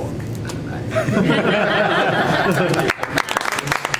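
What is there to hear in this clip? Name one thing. A group of people laughs.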